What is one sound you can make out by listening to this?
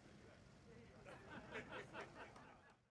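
Several men chat quietly in the background.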